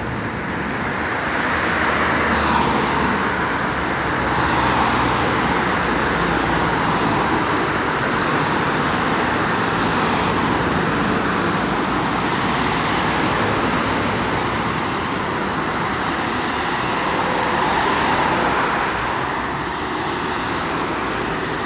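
Steady street traffic rumbles in the background.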